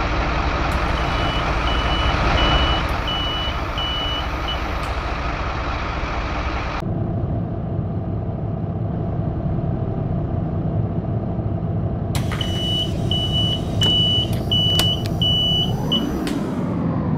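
A bus door warning beeps in short, even pulses.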